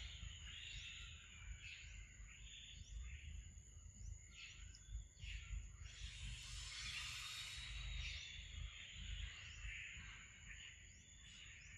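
Two macaques scuffle on stone.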